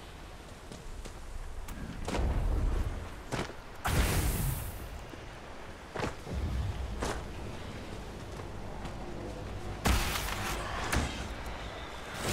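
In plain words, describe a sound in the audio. Footsteps crunch on rocks and gravel.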